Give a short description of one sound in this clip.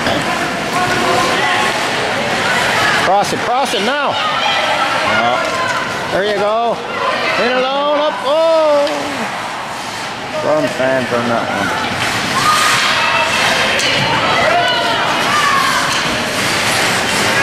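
A crowd of spectators shouts and cheers in a large echoing rink.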